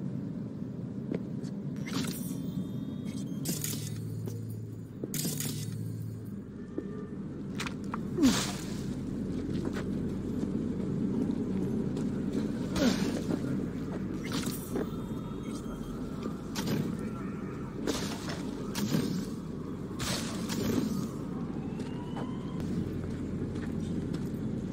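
Footsteps thud and scrape on hard surfaces.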